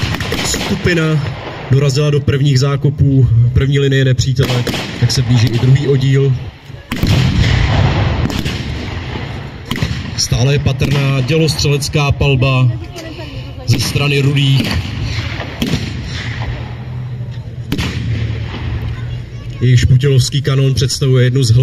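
Gunshots and blasts crack and boom in the distance outdoors.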